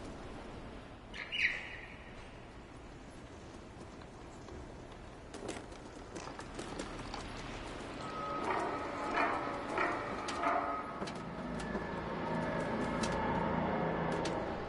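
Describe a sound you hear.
Soft paw steps patter on hard ground.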